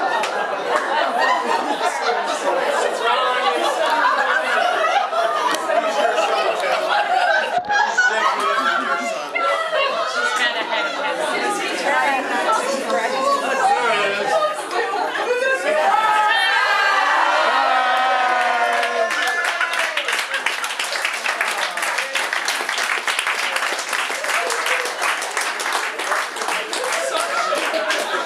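A crowd of men and women chatter loudly in an echoing hall.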